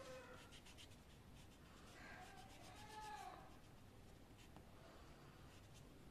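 An eraser rubs back and forth on paper.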